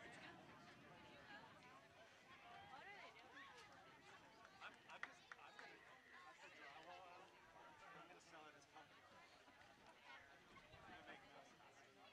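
Players and spectators call out and shout across an open field outdoors.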